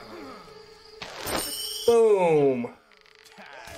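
A magic spell bursts with a loud whoosh and a falling ringing tone.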